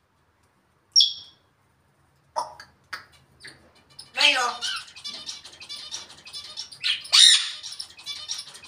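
A parrot whistles and squawks nearby.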